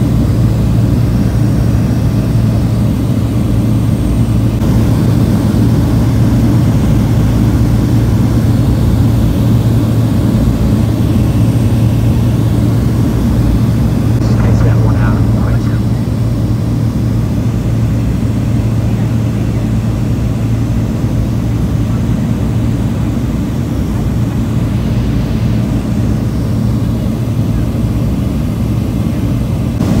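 A single-engine propeller plane drones steadily in flight, heard from inside the cabin.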